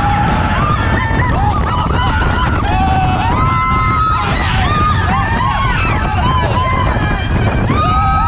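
A young man yells with excitement close by.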